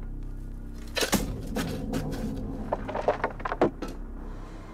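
A shovel digs into dirt and scrapes.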